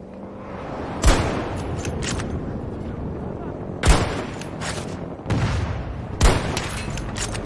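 A sniper rifle fires single loud shots, some seconds apart.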